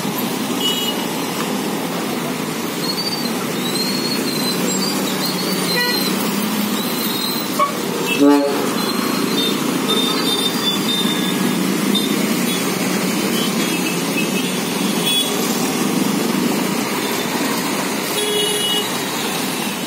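Vehicle horns honk now and then.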